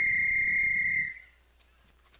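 A whistle blows one long, steady, shrill blast.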